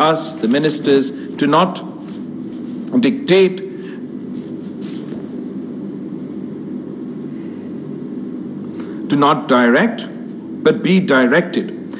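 A young man speaks calmly into microphones.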